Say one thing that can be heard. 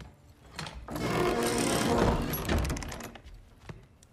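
Heavy wooden cupboard doors creak and swing open.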